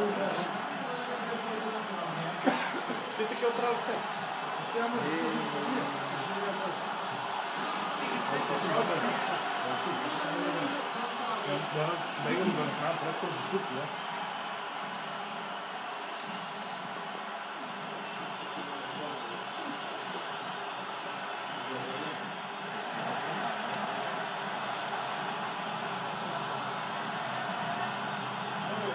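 A stadium crowd roars steadily through a television speaker.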